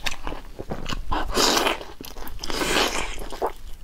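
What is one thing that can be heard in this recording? A young woman slurps saucy food noisily.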